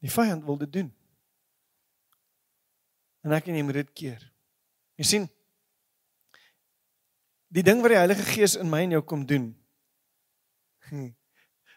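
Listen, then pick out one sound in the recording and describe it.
A man speaks with animation through a microphone, in bursts with pauses.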